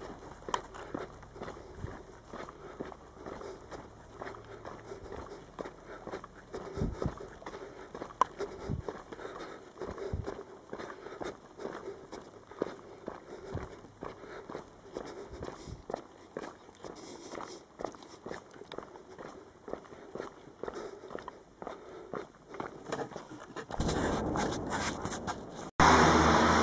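Footsteps tap along a paved road outdoors.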